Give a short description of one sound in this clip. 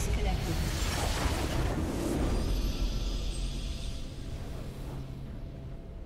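A magical burst whooshes loudly and fades away.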